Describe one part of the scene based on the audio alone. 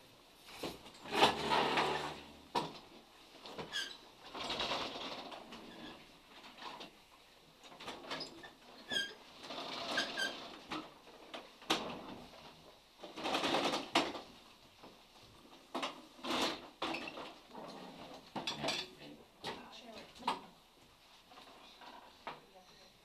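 Bags and clothing rustle and bump as a woman moves about.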